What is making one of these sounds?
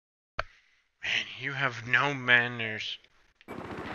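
A young man speaks casually into a headset microphone, close up.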